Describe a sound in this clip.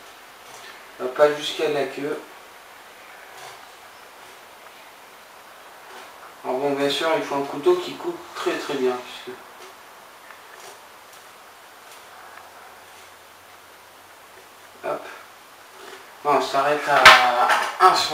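A man talks close by.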